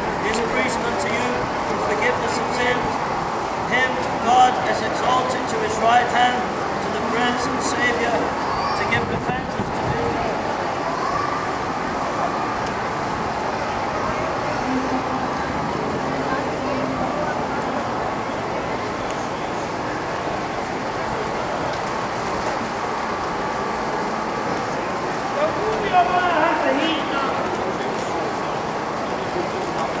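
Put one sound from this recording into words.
Footsteps patter on paving.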